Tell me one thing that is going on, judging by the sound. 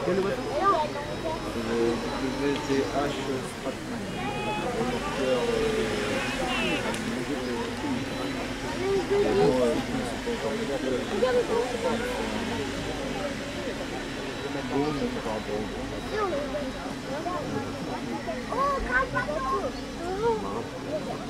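Small model boat motors hum faintly across the water.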